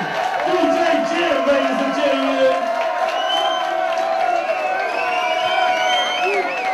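Loud music plays through loudspeakers.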